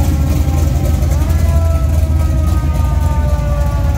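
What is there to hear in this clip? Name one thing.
A muscle car's engine revs up briefly as the car pulls away.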